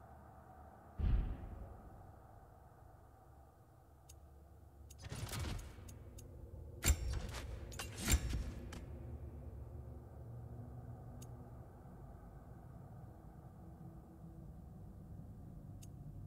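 Soft menu clicks and whooshes sound as selections change.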